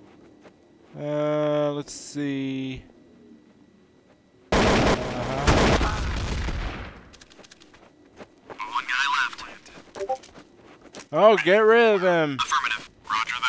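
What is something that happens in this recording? A man talks with animation into a microphone close by.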